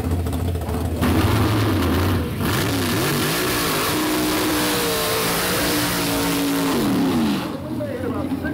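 A race car engine roars loudly and revs up as the car launches.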